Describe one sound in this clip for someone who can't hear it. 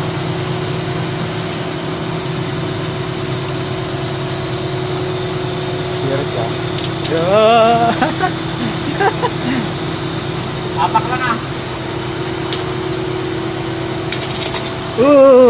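A machine's engine hums steadily nearby.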